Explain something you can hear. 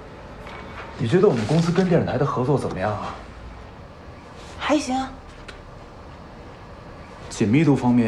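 A man speaks calmly and quietly nearby.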